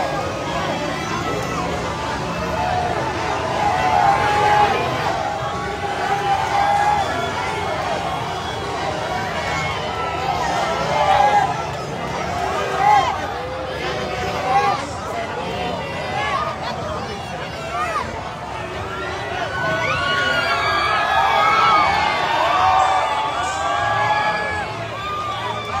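A large crowd of men and women cheers and shouts loudly outdoors.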